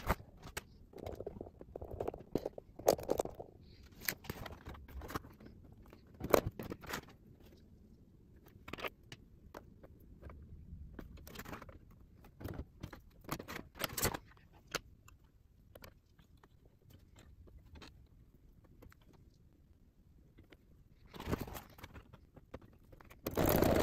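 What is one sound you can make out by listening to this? Fabric rustles and crinkles close by as it is handled.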